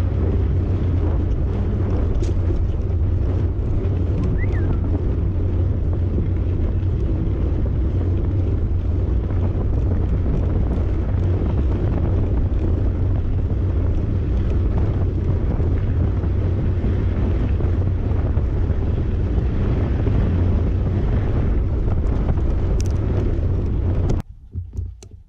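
Strong wind rumbles loudly past a bicycle moving fast on a dirt trail.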